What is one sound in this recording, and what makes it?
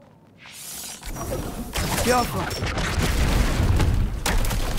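A bolt of energy crackles and hums.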